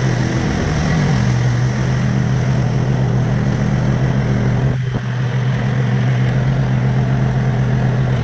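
A ride-on mower engine drones steadily close by.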